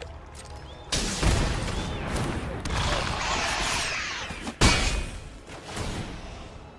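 A magical spell bursts with a loud whoosh.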